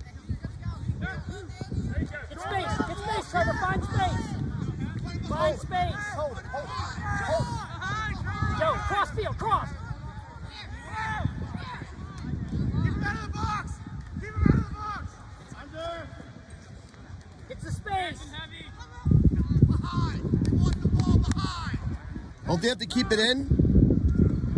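Young players shout and call out across an open field.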